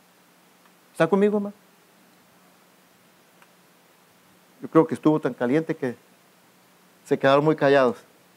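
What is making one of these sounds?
A man speaks calmly from a short distance, in short phrases with pauses.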